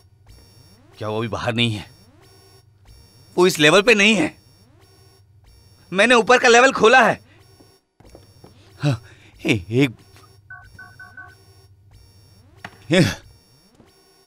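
A man speaks urgently, close by.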